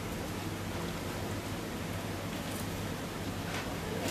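Plastic candy wrappers rustle as a young man handles them.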